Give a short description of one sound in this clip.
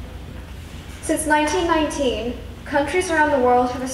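A young girl speaks over a loudspeaker in a large echoing hall.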